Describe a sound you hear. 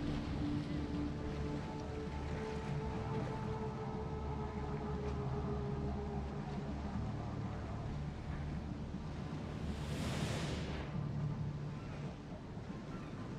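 A ship's engine rumbles low and steady.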